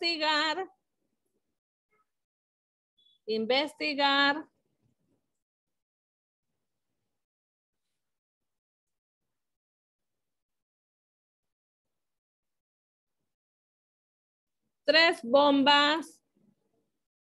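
A woman speaks in short phrases through an online call.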